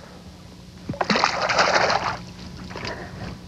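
Water splashes as a fish is released.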